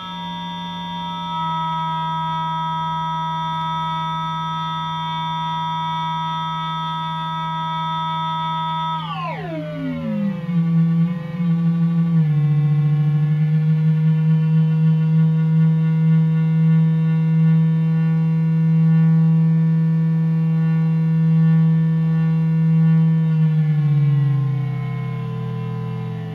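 A modular synthesizer plays a ring-modulated electronic drone.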